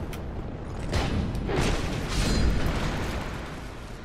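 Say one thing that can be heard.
Fire whooshes and roars as a heavy blow lands.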